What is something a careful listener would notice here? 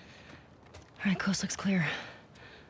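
A young woman speaks quietly and calmly.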